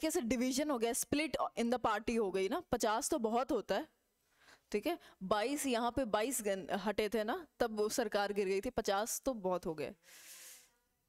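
A young woman speaks with animation through a close microphone.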